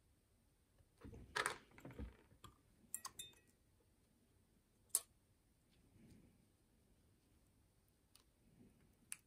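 Metal parts of a small lock click and scrape as they are handled.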